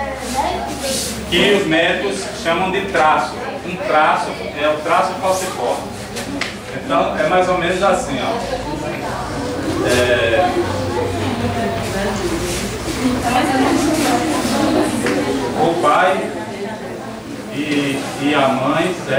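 A man speaks with animation to a group nearby.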